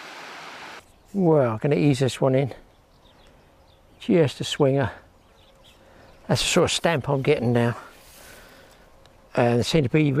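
An elderly man talks close by, in short bursts.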